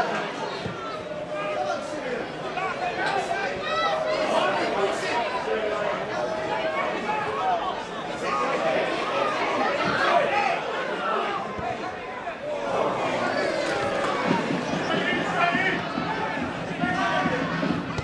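A crowd of spectators chatters and shouts nearby outdoors.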